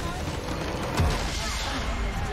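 A video game crystal structure shatters with a loud crash.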